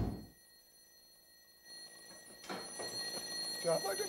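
A door opens.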